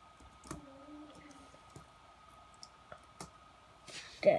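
Keys click on a laptop keyboard.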